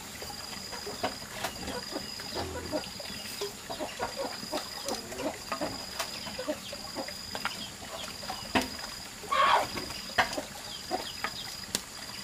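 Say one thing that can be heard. A wooden spoon stirs in a metal pot.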